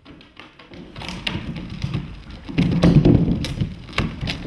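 A wooden cask rumbles as it is rolled across a floor.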